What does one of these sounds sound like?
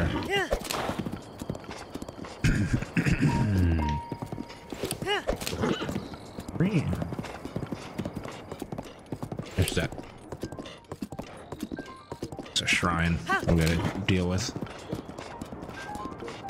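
Horse hooves gallop over grass.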